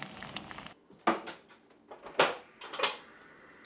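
Dishes clink at a sink.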